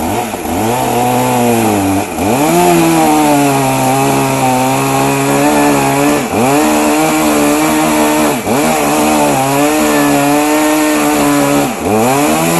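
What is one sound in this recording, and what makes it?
A portable band sawmill's engine runs under load as it cuts a log, dipping briefly and picking back up.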